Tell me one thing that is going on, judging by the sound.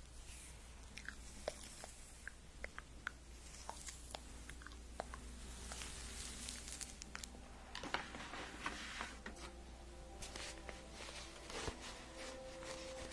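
A young woman whispers softly close to a microphone.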